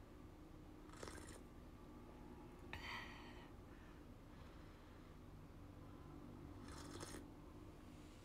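A young woman sips and slurps a drink up close.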